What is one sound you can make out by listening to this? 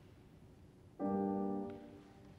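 A piano plays a chord in a large hall.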